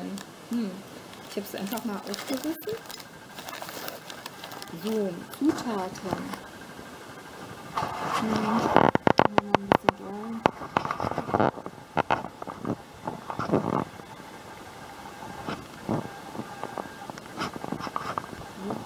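A cardboard box scrapes and rustles as hands turn it over.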